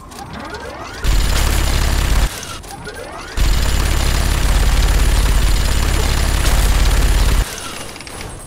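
A heavy rotary gun fires in long, rapid bursts.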